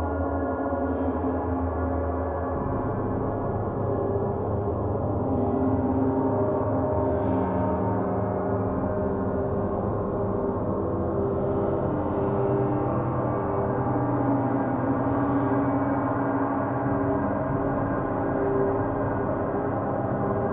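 Large gongs shimmer and hum with a deep, sustained ringing.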